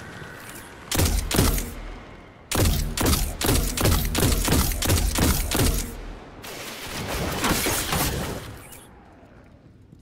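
Rapid bursts of game gunfire rattle quickly.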